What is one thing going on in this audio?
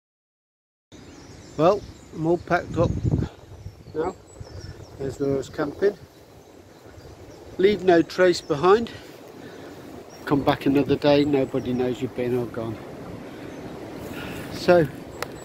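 A middle-aged man talks calmly and close by, outdoors.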